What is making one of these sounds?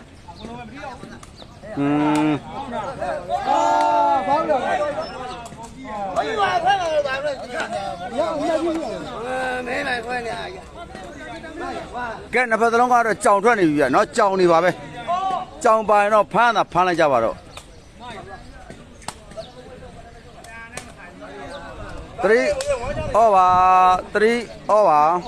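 A woven ball thuds as players kick it back and forth.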